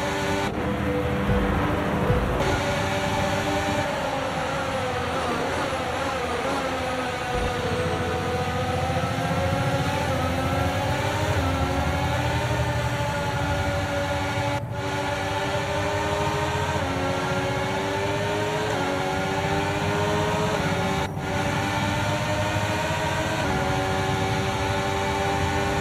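Racing car engines whine loudly, rising and falling in pitch as the gears shift.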